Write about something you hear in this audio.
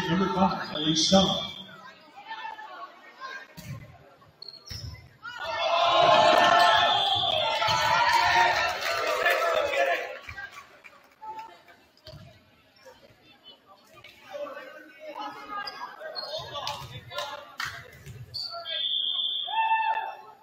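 A referee blows a short whistle in an echoing gym.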